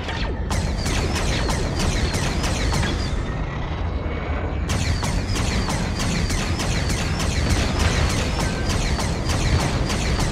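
Laser cannons fire in quick, regular bursts.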